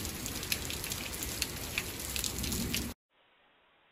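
Rain patters and hisses steadily outdoors.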